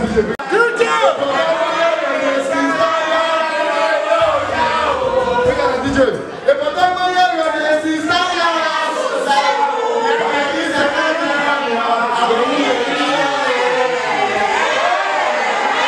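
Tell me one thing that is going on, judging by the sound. A young man raps loudly into a microphone through loudspeakers.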